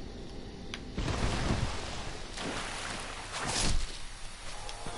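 Footsteps rustle through thick foliage.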